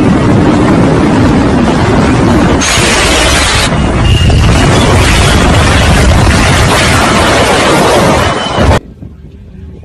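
A motorcycle engine roars loudly close by.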